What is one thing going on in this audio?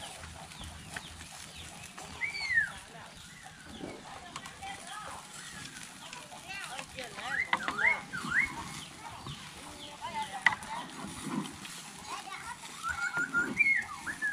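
Chopsticks scrape and clack against a wok.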